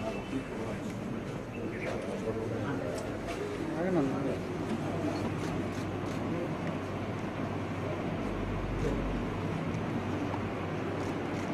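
A crowd of men murmurs and talks nearby.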